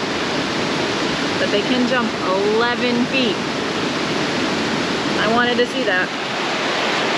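A woman speaks calmly and closely.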